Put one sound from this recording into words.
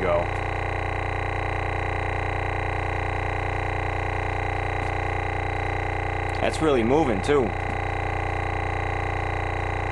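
A subwoofer plays a steady deep droning bass tone.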